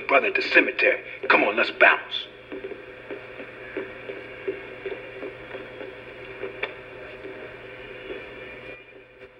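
A small, tinny loudspeaker plays a game's sound, loud at first and then quieter.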